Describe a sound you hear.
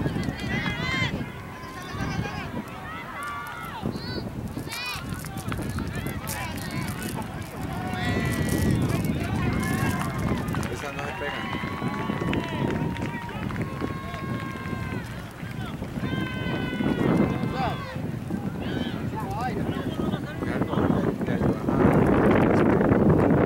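Young players shout to one another across an open field.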